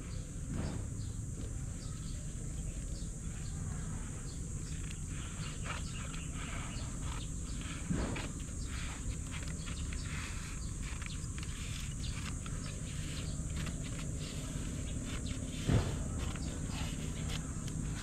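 A knife scrapes and cuts against a wooden board.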